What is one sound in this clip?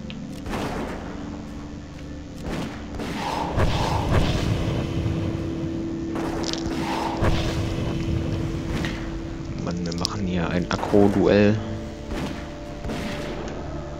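Sword blows and spell effects clash in a game battle.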